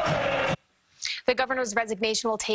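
A woman speaks clearly into a microphone, like a news presenter.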